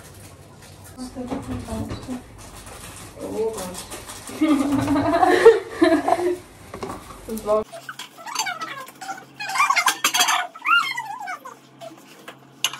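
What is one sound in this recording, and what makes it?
Several young women chat and laugh together close by.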